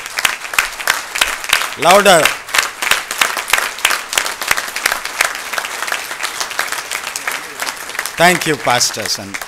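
A large audience claps steadily in an echoing hall.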